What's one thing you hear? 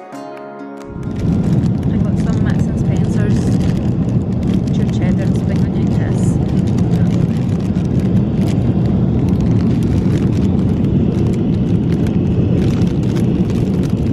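A jet engine roars steadily in the cabin.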